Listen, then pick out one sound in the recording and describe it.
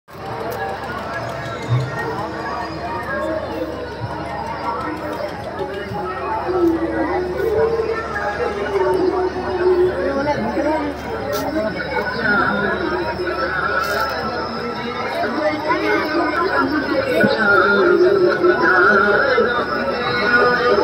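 A crowd of men and women chatter all around, outdoors.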